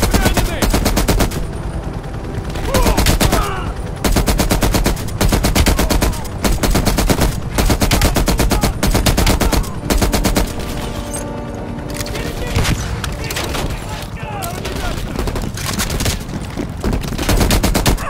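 An automatic rifle fires rapid bursts of shots close by.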